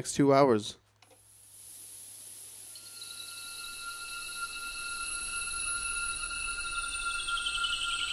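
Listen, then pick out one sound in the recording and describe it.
Electronic music plays through speakers, with sustained high tones that swell steadily louder.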